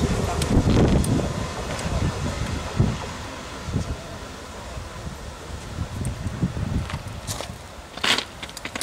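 A train rumbles along the tracks in the distance, moving away.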